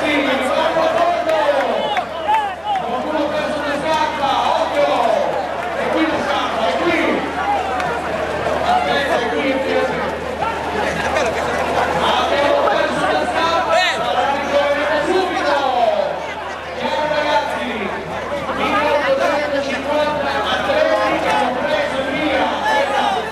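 A large crowd of men and women talks and shouts all around, close by.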